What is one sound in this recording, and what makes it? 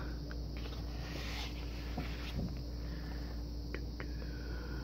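Paper rustles as pages of a booklet are turned.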